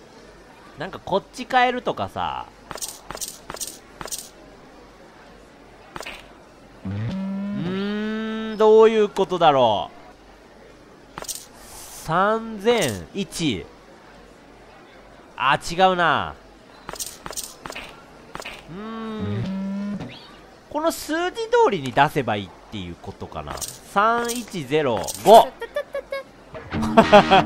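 Coins clink onto a counter.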